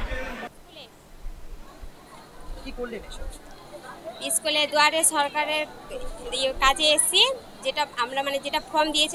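A young woman speaks calmly and close by.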